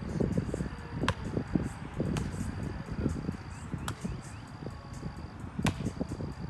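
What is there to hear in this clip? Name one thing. A volleyball is struck with a hand with a dull slap.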